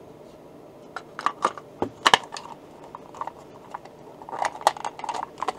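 Hands handle and tap a plastic casing with soft knocks and clicks.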